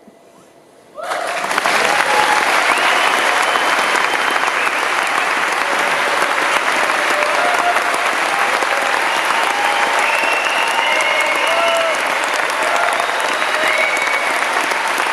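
An audience claps and cheers loudly in an echoing hall.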